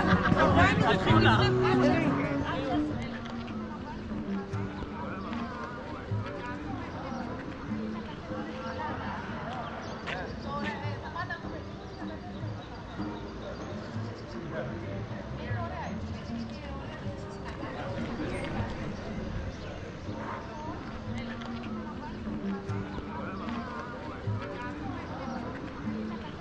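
A man talks calmly close by, outdoors.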